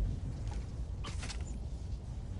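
A web line zips through the air with a sharp whoosh.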